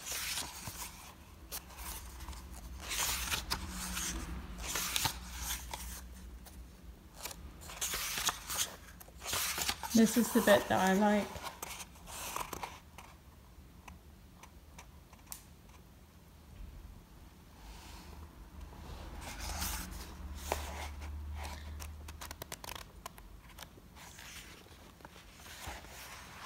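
Paper pages rustle and flip as a book is leafed through.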